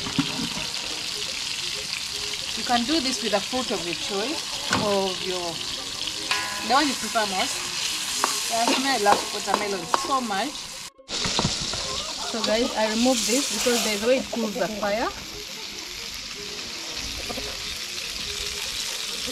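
Food sizzles in hot oil in a pan.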